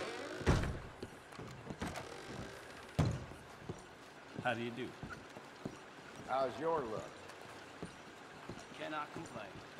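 Boots thud on a wooden floor.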